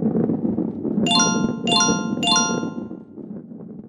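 Bright electronic chimes ring out in quick succession.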